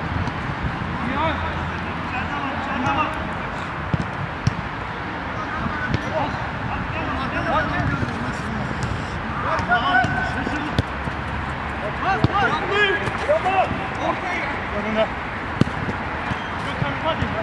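Men shout to each other across an open-air pitch.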